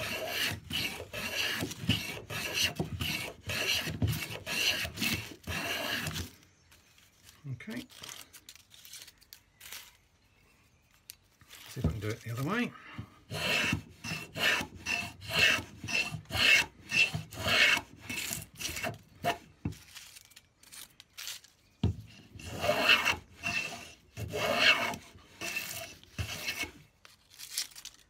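A hand plane shaves wood in quick, rasping strokes.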